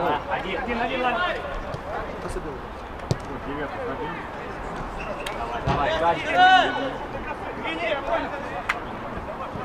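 Men shout to each other across an open pitch outdoors.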